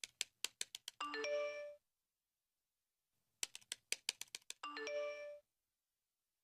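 A phone message alert chimes.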